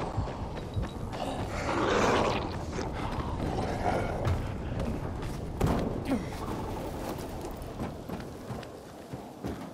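Footsteps run quickly across hard ground.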